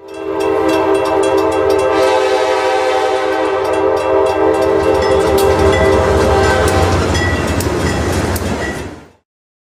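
A diesel locomotive rumbles as a train rolls along the tracks.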